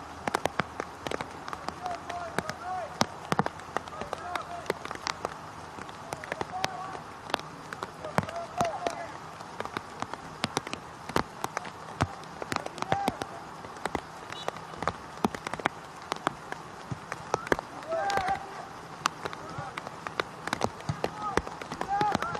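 Young players shout faintly across an open outdoor field.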